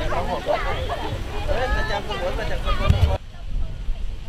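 Young adults chatter and laugh nearby outdoors.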